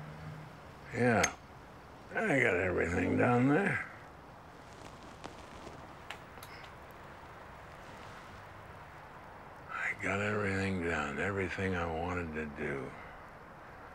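An elderly man speaks slowly and gruffly, close by.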